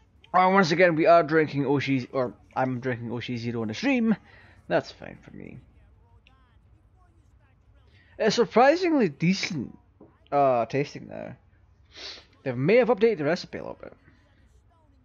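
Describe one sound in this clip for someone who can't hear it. A man talks quickly and with exasperation.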